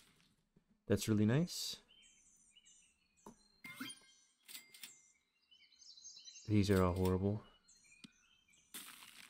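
Short playful game chimes and blips sound now and then.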